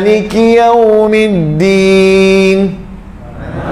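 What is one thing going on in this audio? A man chants in a long, drawn-out voice through a microphone.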